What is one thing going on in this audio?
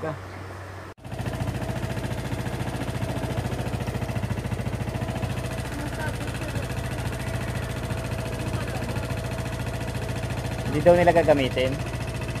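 A motorcycle engine idles steadily.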